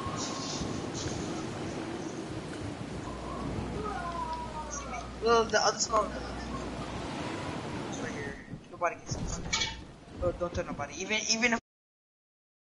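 A pickaxe thuds against wooden boards.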